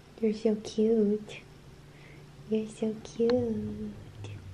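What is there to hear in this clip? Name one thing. A cat meows softly up close.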